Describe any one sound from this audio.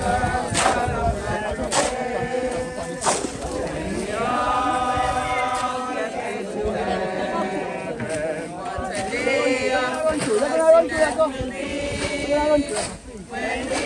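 A group of men and women sing together.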